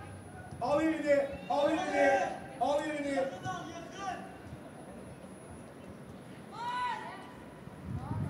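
Young men shout to each other across an open outdoor field.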